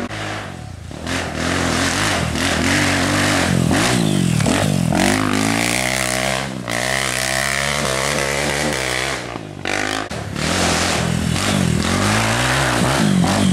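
A second dirt bike engine roars past close by and climbs away.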